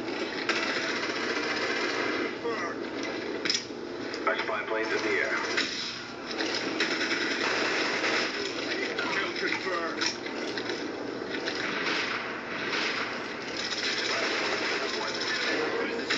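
Gunshots crack in quick bursts through a television speaker.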